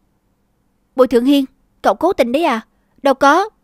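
A young woman speaks sharply and close by.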